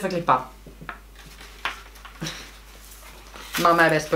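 Paper crinkles and rustles.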